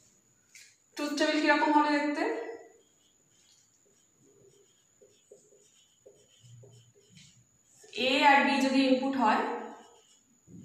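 A woman speaks clearly and calmly, close by.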